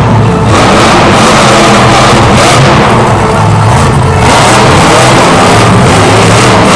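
A monster truck engine roars loudly in a large echoing arena.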